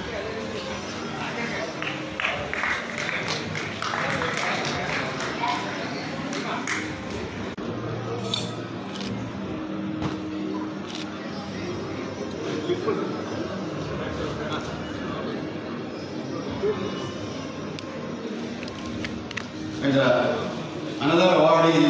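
A crowd of people chatter in a large, echoing hall.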